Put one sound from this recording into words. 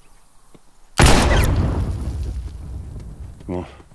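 A pistol fires a single loud shot that echoes and slowly fades.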